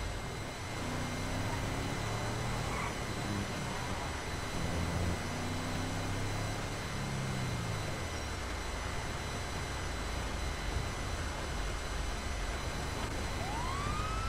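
A pickup truck engine hums and revs as it drives along a road.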